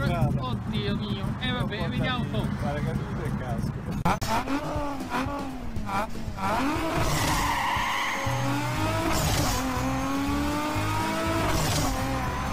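A car engine hums and revs as the car drives.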